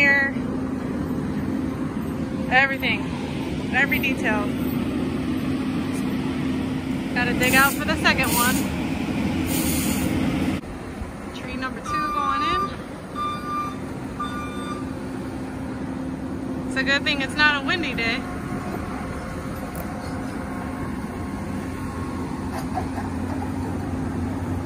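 A heavy machine's diesel engine rumbles steadily nearby.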